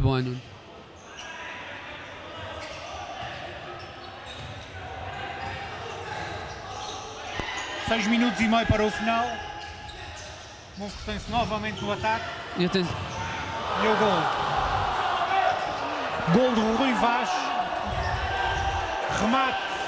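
A crowd of spectators murmurs and cheers in an echoing hall.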